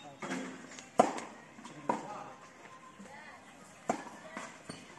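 A tennis racket strikes a ball.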